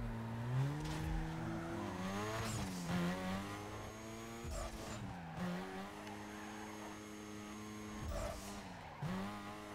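Tyres screech on asphalt as a car drifts.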